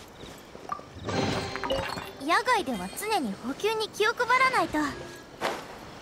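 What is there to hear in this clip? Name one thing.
A treasure chest opens with a bright, rising chime.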